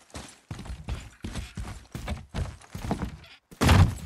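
Heavy footsteps thump on wooden planks.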